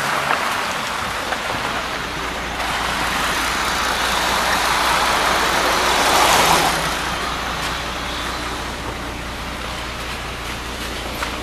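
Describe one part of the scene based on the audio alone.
A bus engine idles with a low steady rumble close by.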